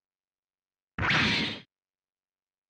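A game explosion bursts with a short roar.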